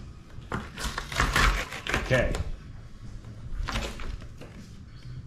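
Tape or a paper stencil rustles and tears as it is peeled away.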